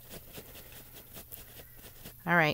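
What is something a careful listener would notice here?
A paper towel rustles as it is rubbed.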